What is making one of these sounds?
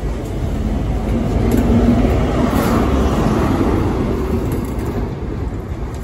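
A locomotive engine roars loudly as it passes.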